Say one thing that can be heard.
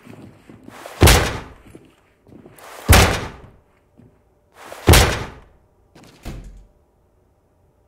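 Heavy blows bang on a wooden door, each echoing briefly.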